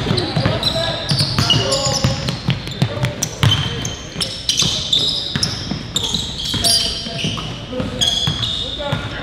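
Sneakers squeak sharply on a hardwood court in an echoing gym.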